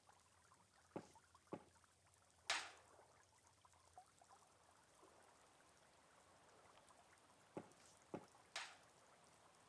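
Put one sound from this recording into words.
Light footsteps tap on a hard floor.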